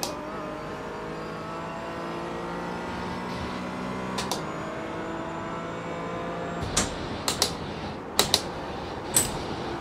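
A racing car engine roars steadily, shifting through gears.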